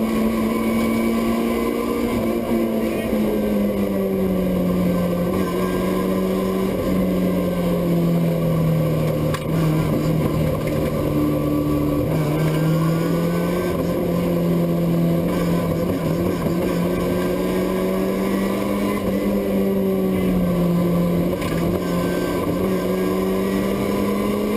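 A car engine roars loudly from inside the cabin, its pitch rising and falling with the gear changes.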